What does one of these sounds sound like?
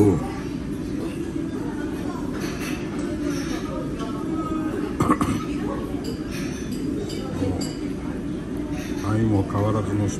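A metal ladle stirs through soup in a bowl.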